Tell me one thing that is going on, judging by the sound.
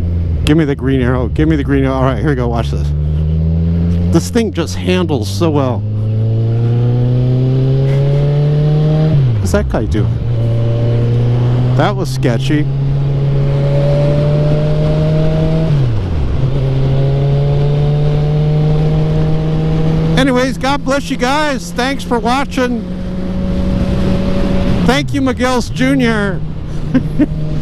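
A motorcycle engine rises in pitch as the rider accelerates, dropping sharply at each gear shift.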